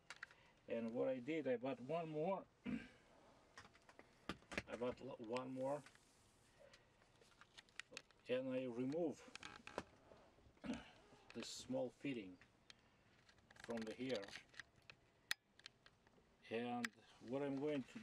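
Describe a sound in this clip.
Plastic parts click and rattle in a man's hands.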